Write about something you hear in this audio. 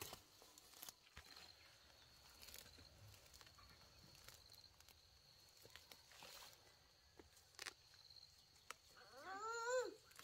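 Leaves rustle as hands pick plants.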